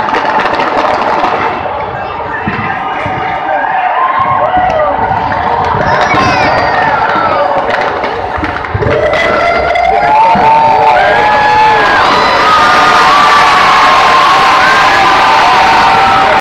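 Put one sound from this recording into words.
Fireworks crackle and fizz loudly overhead.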